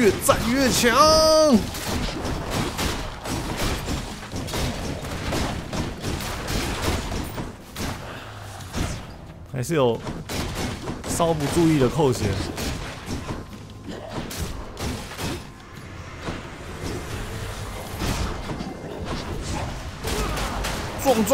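Blades slash and strike in quick bursts of combat.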